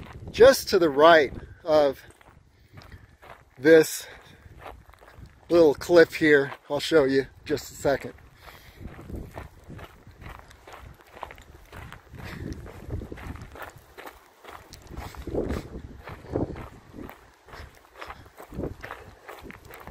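Footsteps crunch steadily on loose gravel.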